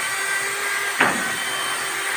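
A tool knocks sharply against a wooden door frame.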